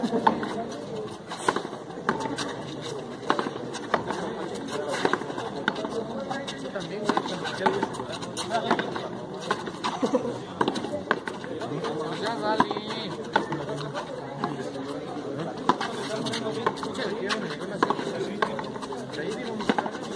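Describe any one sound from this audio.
A ball smacks hard against a wall again and again, echoing in a large walled court.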